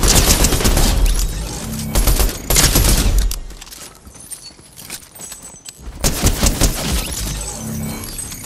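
Quick footsteps patter on dirt.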